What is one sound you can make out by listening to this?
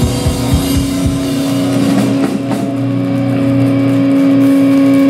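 Electric guitars play loud and distorted.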